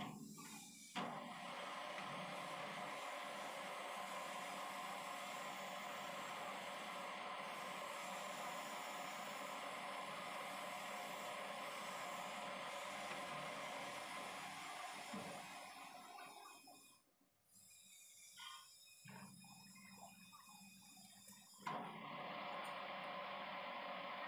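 A metal lathe whirs loudly as it spins.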